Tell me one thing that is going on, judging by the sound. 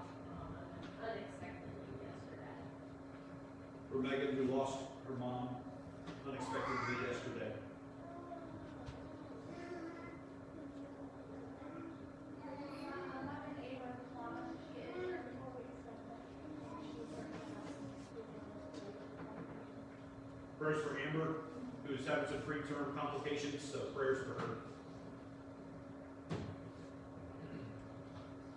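A man reads out calmly through a microphone in an echoing hall.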